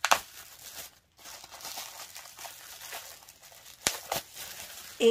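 Bubble wrap crinkles and rustles in hands.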